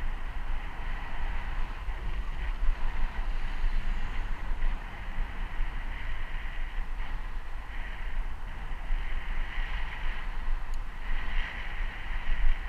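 Wind buffets and rumbles steadily outdoors.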